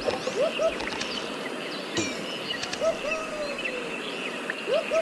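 Short whooping swoops sound again and again as a monkey swings from vine to vine.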